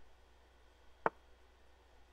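The move sound of an online chess game clicks once.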